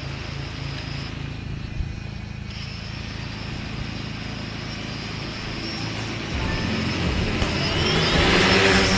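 A small drone's propellers whir steadily nearby, then spin up louder and higher.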